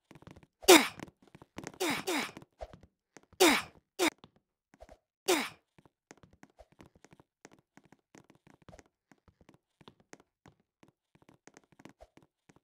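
Fingers tap lightly on a touchscreen.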